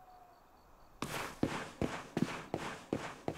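Footsteps patter quickly across a stone floor.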